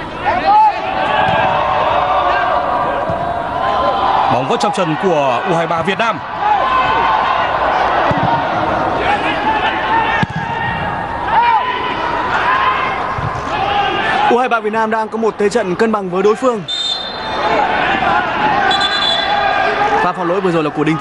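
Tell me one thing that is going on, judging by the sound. A large stadium crowd cheers and chants.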